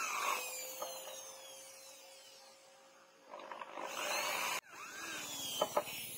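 An electric drill whirs as it bores into wood.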